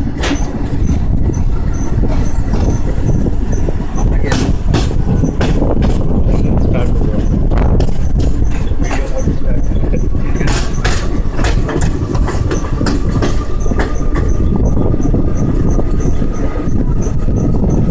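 A train rumbles steadily along the tracks, heard from an open door.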